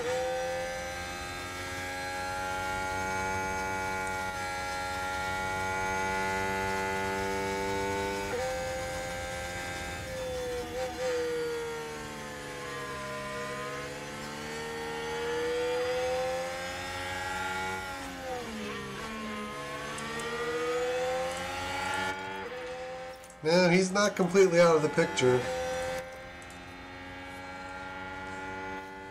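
A racing car engine whines steadily, rising and falling in pitch as it shifts gears.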